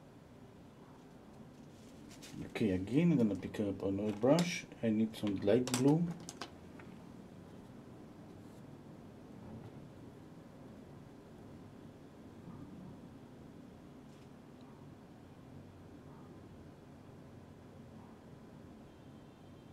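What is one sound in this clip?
A brush scrapes softly across canvas.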